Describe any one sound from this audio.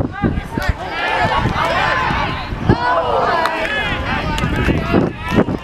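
A crowd of spectators cheers and yells close by.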